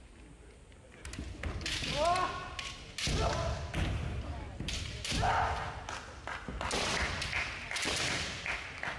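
Bamboo swords clack sharply against each other and against armour.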